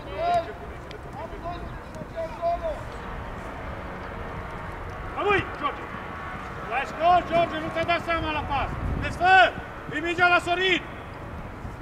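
Young men shout to one another outdoors across an open field.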